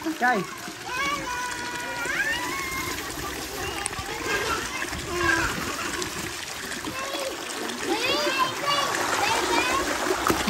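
Water runs and splashes steadily down a slide.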